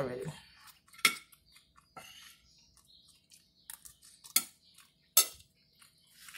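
A fork scrapes and clicks against a plate.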